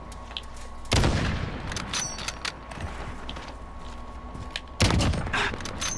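A sniper rifle fires with a loud crack.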